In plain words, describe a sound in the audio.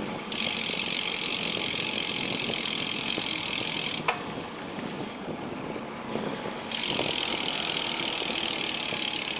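Bicycle tyres hum on a smooth path.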